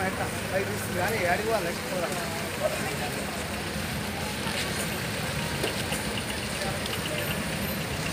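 A small truck rumbles past close by.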